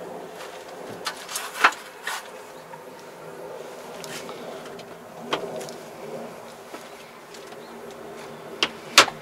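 Controls click under a hand now and then.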